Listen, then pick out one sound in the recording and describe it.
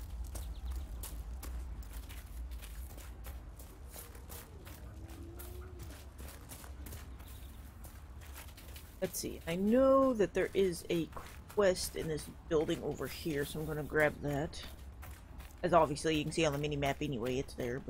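Footsteps tap steadily on the ground.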